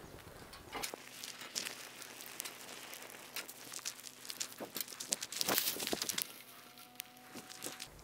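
Dry twigs snap as they are broken by hand.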